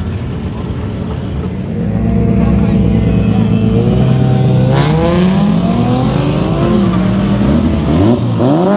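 A car engine revs loudly, its pitch rising and falling.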